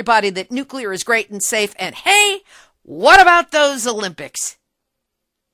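A man speaks urgently into a phone.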